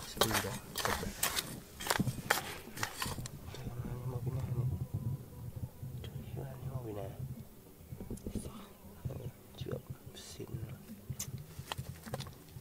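A metal trowel scrapes and digs into dry, stony soil.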